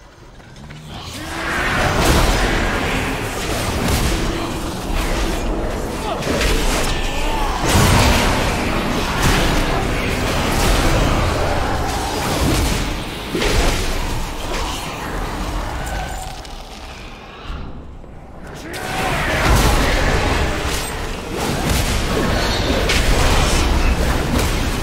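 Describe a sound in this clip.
Spells crackle and weapons clash in a fast, busy fight.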